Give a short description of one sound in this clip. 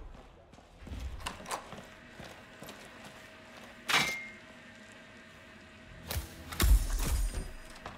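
A door creaks open and shuts.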